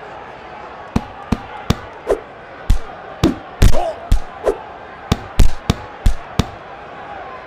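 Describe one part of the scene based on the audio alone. Punches land with sharp thumps in quick bursts.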